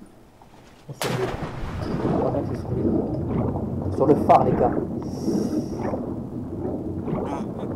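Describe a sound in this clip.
Water rushes and burbles, muffled as if heard underwater.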